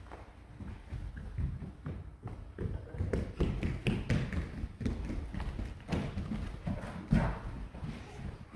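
Footsteps shuffle and thump across a floor.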